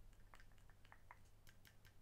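A plastic bag crinkles in a hand.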